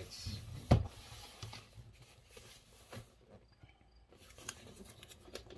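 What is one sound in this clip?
A cardboard box rustles and knocks.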